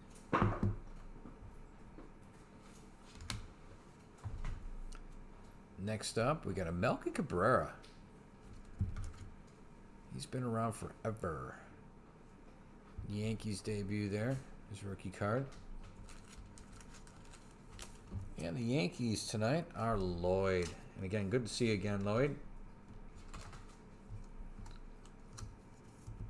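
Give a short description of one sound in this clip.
Trading cards rustle and tap softly in hands.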